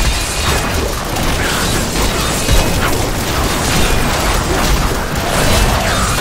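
Magic spells crackle and blast in a fierce, busy fight.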